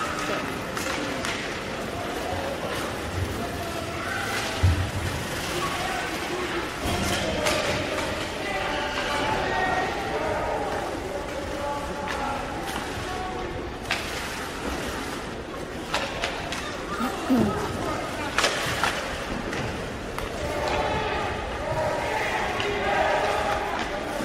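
Spectators call out and chatter in the stands.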